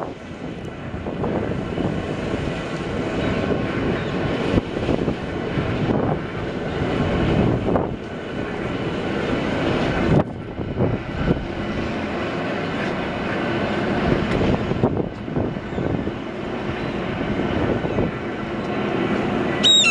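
A steel bascule bridge rumbles.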